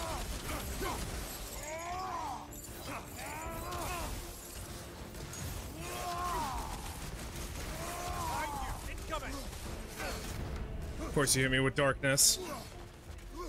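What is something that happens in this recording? Metal weapons clash and strike hard.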